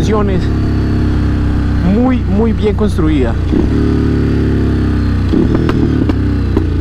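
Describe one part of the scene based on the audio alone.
A motorcycle engine revs up and down as gears shift.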